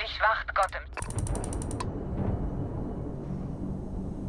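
A spaceship engine rumbles and whooshes.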